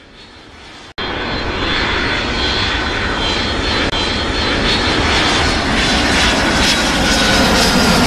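Sea waves wash and roll steadily in the open air.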